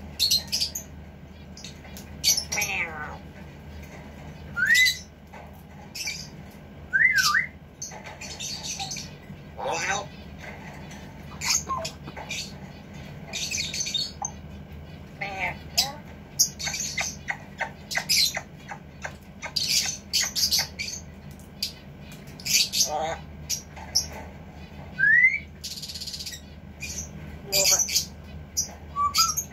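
A parrot whistles and squawks close by.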